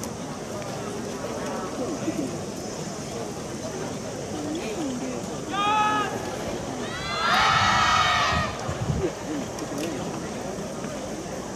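A crowd murmurs and chatters in the open air.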